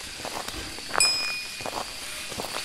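A bright notification chime rings once and fades.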